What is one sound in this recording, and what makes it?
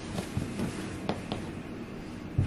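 Bare feet pad softly across a carpet.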